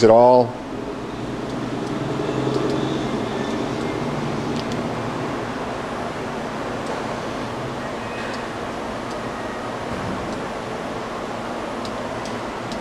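A machine hums steadily nearby.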